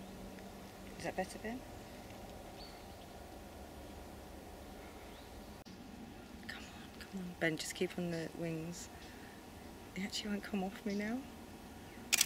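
A woman speaks softly up close.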